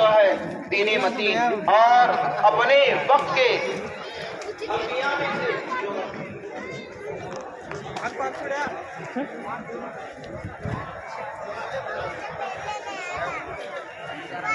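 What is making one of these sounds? A large outdoor crowd murmurs and chatters all around.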